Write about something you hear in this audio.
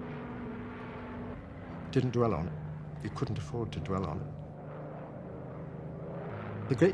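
Aircraft engines drone steadily overhead.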